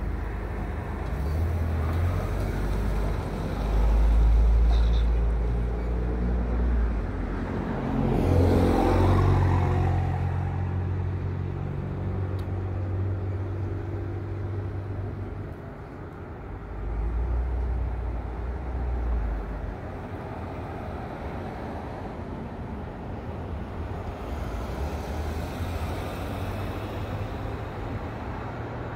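A car engine idles nearby.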